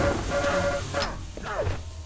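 An electric beam weapon fires with a steady crackling hum.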